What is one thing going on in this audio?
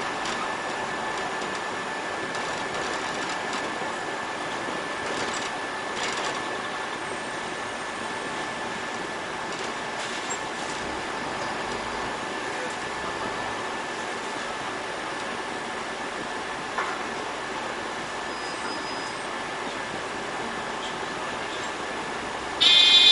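A city bus drives along a street.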